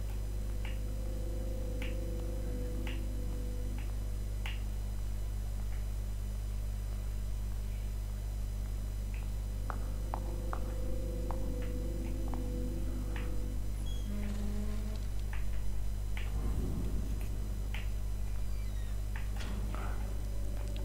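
Footsteps creep softly across a hard floor.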